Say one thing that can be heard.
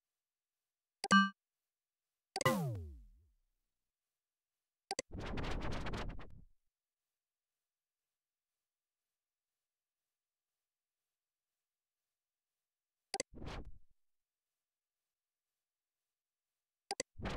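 Short electronic clicks and chimes sound now and then.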